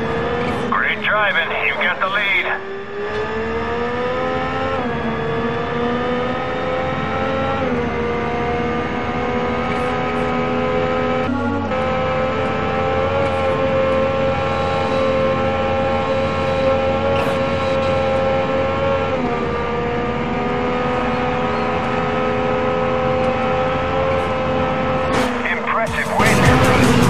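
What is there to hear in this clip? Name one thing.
A racing car engine roars at high revs, dropping briefly with each gear change.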